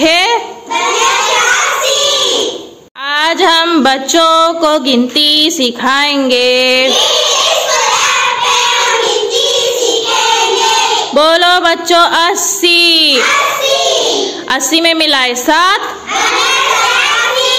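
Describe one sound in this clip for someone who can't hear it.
A group of young girls sing together close by.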